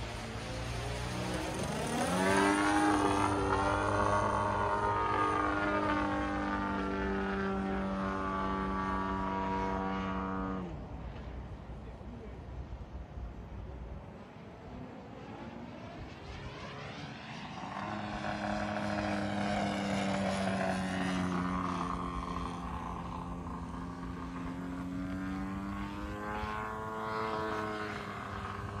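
A model airplane engine whines overhead, rising and falling in pitch as it passes and loops.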